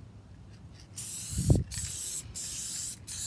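An aerosol can sprays in bursts with a loud hiss.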